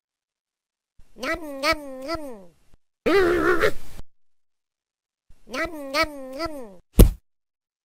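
A kitten meows in a high voice.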